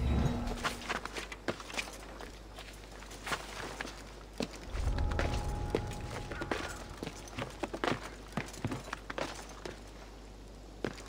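Hands and feet scrape and grip on stone during a climb.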